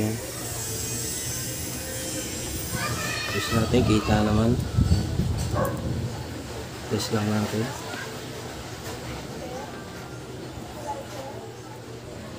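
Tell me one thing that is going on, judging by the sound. Metal test probes tap lightly against electrical contacts.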